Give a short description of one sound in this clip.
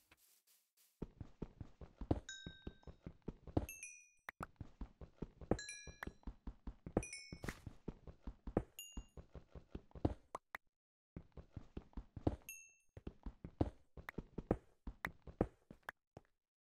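A pickaxe taps rapidly on stone blocks in a game.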